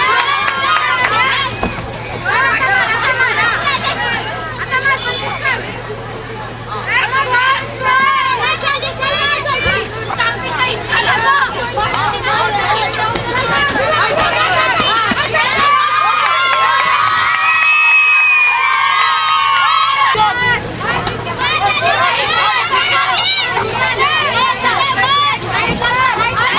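A crowd shouts and cheers loudly close by.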